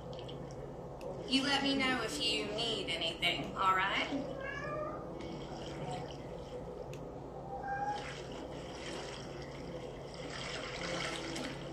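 Bath water sloshes as a man is scrubbed in a tub.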